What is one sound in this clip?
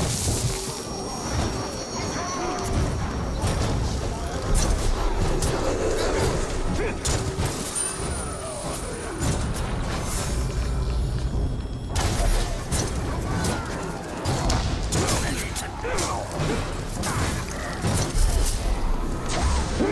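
Swords clash and strike in quick, sharp blows.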